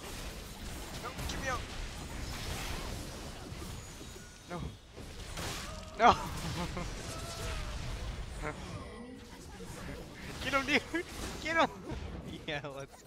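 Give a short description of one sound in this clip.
Magic blasts and spell effects burst and crackle in a fight.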